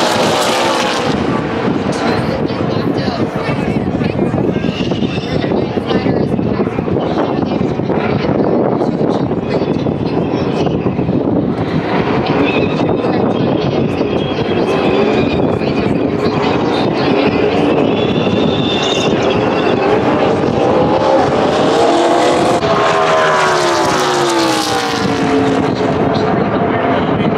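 A large crowd cheers.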